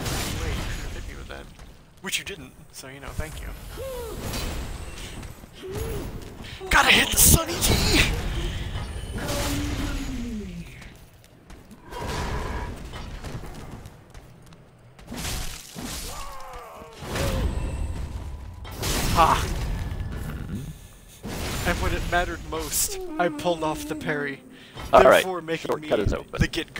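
Metal blades clash and slash in a fight.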